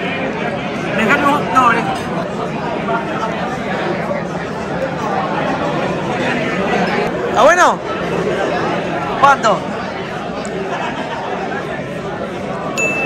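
A crowd murmurs steadily in the background.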